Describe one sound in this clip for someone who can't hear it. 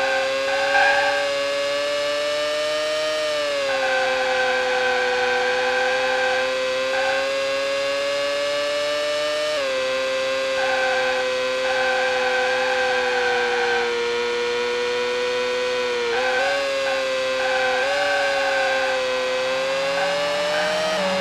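Tyres screech in the corners.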